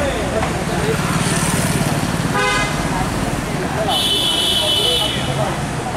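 Car engines rumble as cars move slowly past.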